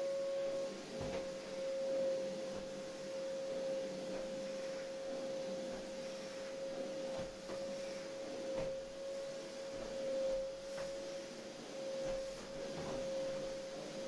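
A vacuum cleaner nozzle knocks against the floor now and then.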